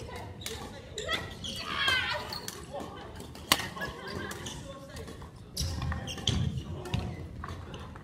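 Sneakers squeak and thud on a wooden floor.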